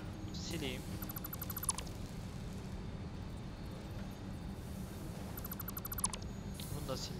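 Short electronic chimes tick rapidly.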